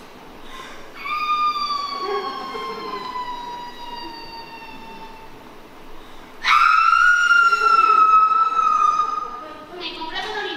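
A young woman cries out in long, drawn-out wails.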